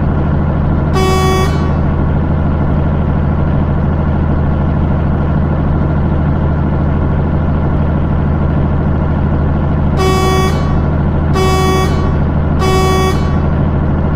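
A truck horn honks in short blasts.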